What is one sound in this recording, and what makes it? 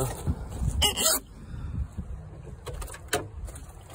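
A car door opens with a click.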